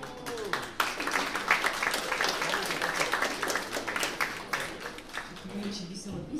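An acoustic guitar is strummed.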